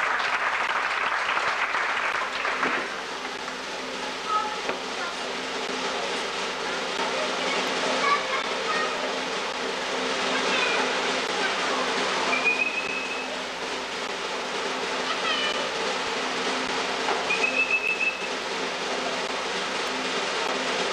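An audience murmurs quietly in a large, echoing space.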